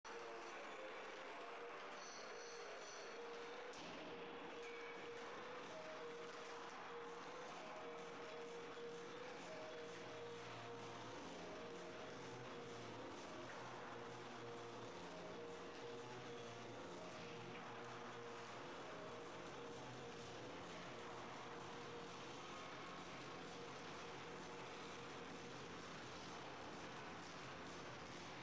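Spectators murmur in a large echoing rink.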